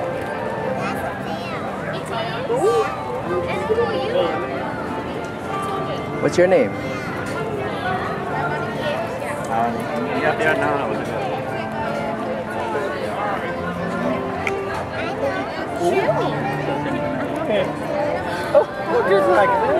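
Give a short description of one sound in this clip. A young woman talks brightly and playfully, close by.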